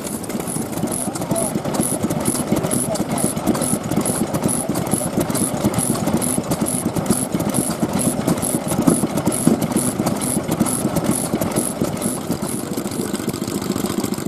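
A second old engine putters with regular beats nearby.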